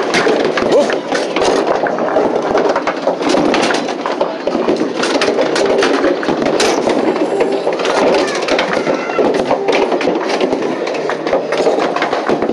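Balls clatter and knock together in a return chute.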